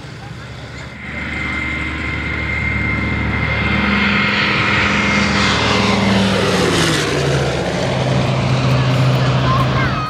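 A propeller plane's engines drone as it flies low overhead, the pitch dropping as it passes.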